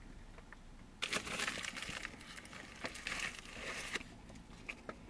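A man munches food close by.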